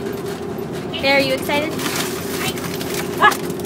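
A young girl speaks in a high voice close by.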